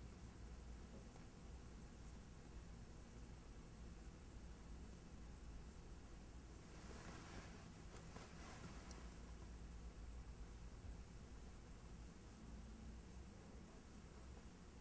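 A brush dabs and strokes softly on paper.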